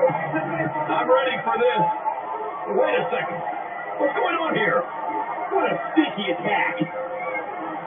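Heavy thuds of bodies hitting a wrestling mat come through a television speaker.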